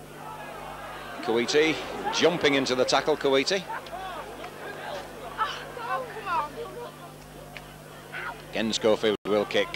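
A crowd murmurs and cheers in a large outdoor stadium.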